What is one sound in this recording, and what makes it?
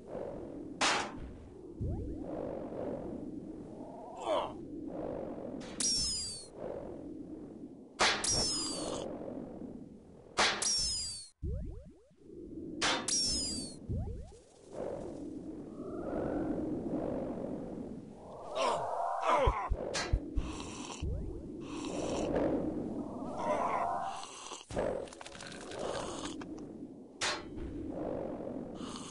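Game combat sounds clash and strike again and again.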